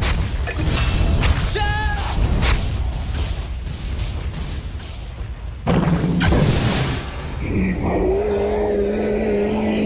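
Game spells whoosh and crackle in a fight.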